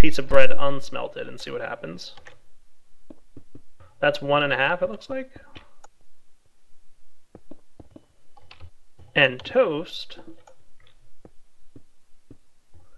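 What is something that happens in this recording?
Stone blocks are placed with short, soft thuds.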